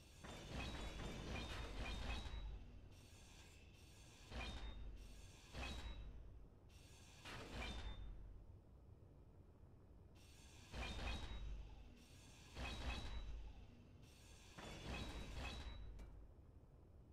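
A welding tool buzzes and hisses in short bursts.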